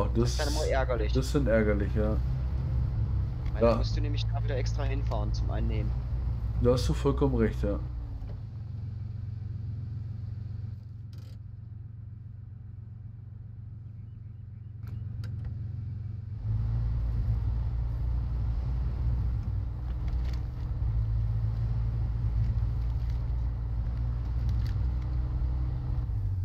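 A truck engine rumbles low and steady, fading down for a while and then rising again.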